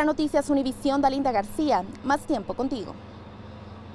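A young woman speaks clearly and with animation into a microphone close by.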